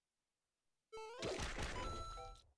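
Upbeat video game music starts suddenly.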